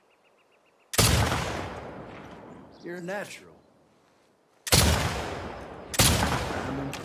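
A rifle fires loud, sharp shots that echo away.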